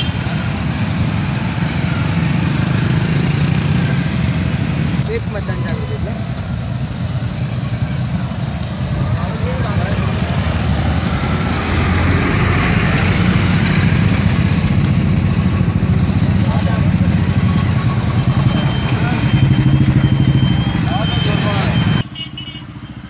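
Many motorcycle engines rumble steadily close by.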